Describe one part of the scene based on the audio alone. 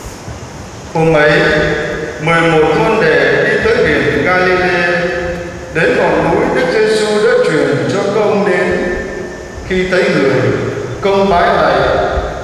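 A man reads aloud calmly through a microphone in an echoing hall.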